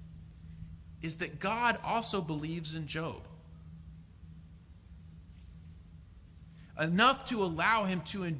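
A young man speaks calmly into a microphone, with pauses between phrases.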